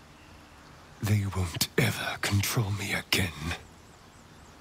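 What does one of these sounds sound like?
A young man speaks calmly and firmly, close to the microphone.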